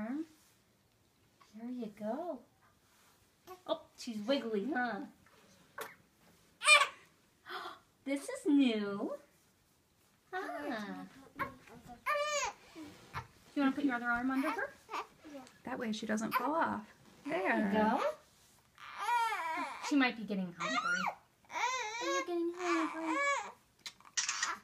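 A baby coos and gurgles.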